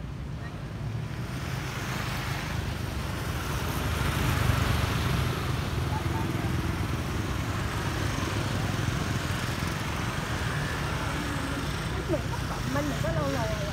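Motorbike engines hum as scooters pass close by.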